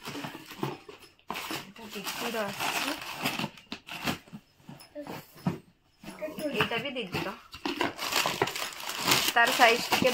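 Cardboard and plastic packaging rustle and crinkle as a box is unpacked.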